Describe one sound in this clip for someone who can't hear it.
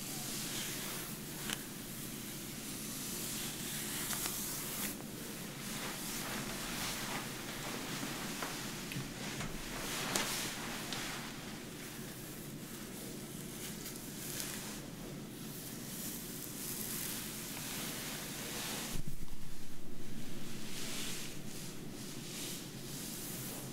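Fingers rub and scrunch through hair close by.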